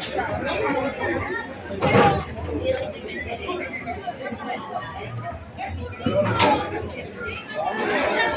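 Plastic riot shields knock and scrape together.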